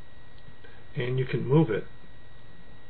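A middle-aged man speaks briefly and calmly into a close microphone.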